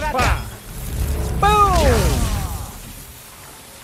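An electric energy blast crackles and whooshes.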